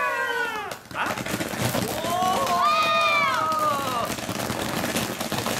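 Sparks crackle and pop from a firework.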